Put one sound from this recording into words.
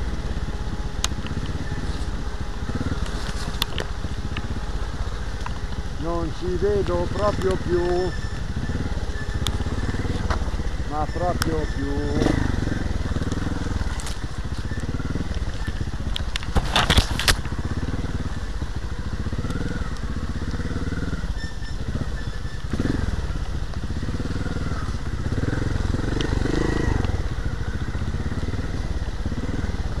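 Rain patters steadily all around.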